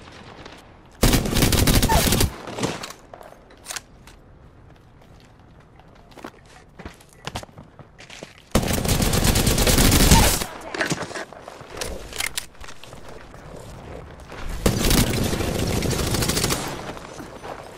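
Automatic gunfire rattles in loud, rapid bursts.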